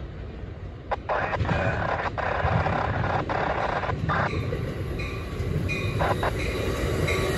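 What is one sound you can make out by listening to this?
Train wheels clack over rail joints as a train rolls past.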